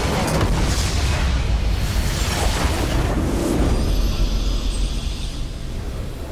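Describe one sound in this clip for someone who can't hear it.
Loud explosions and magical blasts crash and roar in a video game.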